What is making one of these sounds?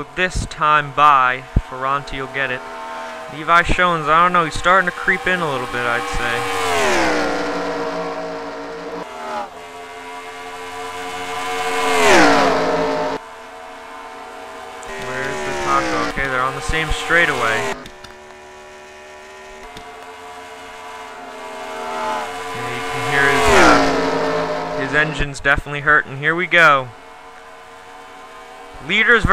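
Racing car engines roar and whine, rising and falling in pitch as cars speed past.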